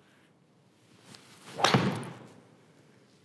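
A golf club strikes a ball with a sharp whoosh and crack.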